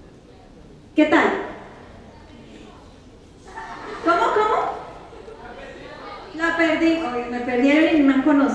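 A young woman speaks with animation into a microphone in a large hall.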